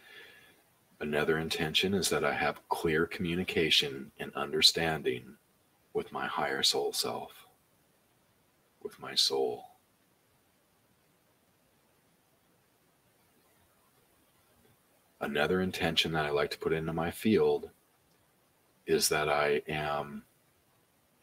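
A middle-aged man talks calmly and closely into a microphone, in bursts with pauses.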